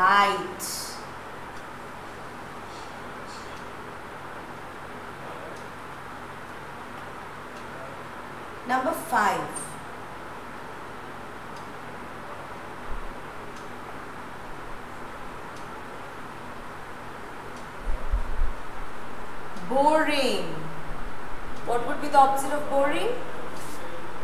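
A woman speaks clearly in short bursts, like a teacher explaining.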